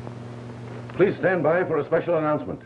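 A man speaks animatedly into a microphone, close by.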